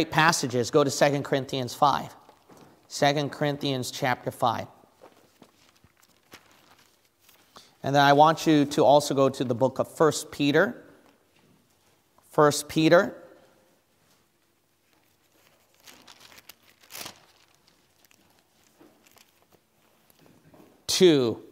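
Book pages rustle as a man turns them.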